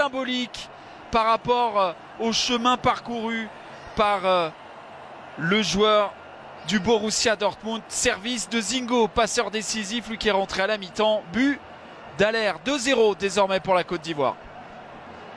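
An adult man speaks with animation close to a microphone.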